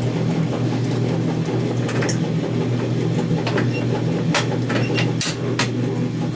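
A wringer handle clicks and clunks as a hand works it.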